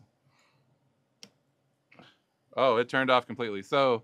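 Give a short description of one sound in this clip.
A button on a device clicks.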